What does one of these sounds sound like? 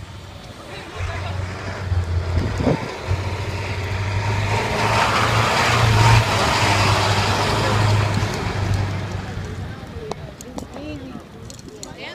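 A bus engine rumbles loudly close by, then fades as the bus pulls away.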